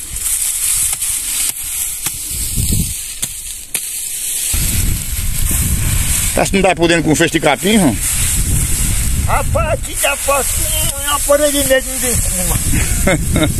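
Dry grass stalks rustle and crackle as they are gathered into a bundle.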